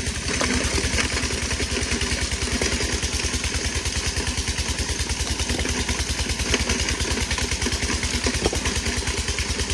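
A hammer strikes rock nearby.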